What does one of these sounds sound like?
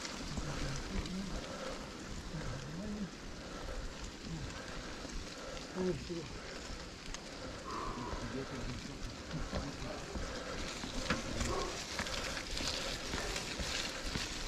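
Wind rumbles past close by, outdoors.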